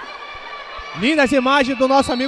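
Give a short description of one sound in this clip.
A referee's whistle blows loud and shrill.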